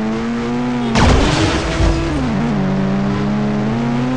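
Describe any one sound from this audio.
A vehicle crashes onto a car with a loud thud.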